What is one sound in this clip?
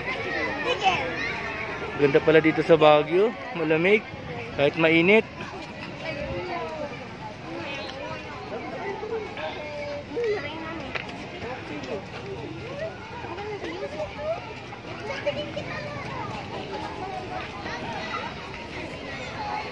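Many people chatter at a distance outdoors.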